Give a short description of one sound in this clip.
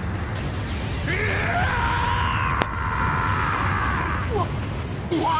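A man screams in fury.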